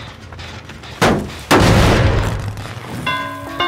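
A heavy metal machine is struck with a loud clanging crash.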